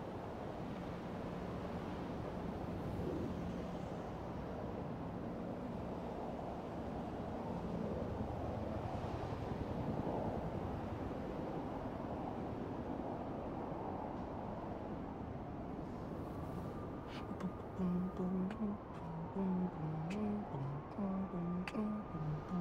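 Wind blows steadily high above a city.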